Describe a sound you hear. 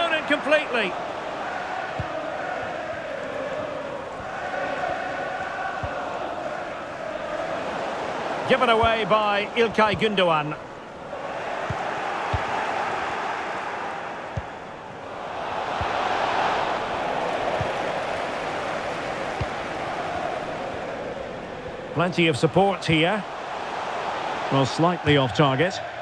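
A large stadium crowd murmurs and roars steadily.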